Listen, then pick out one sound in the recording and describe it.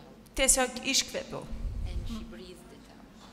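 A woman speaks through a microphone in a large echoing hall.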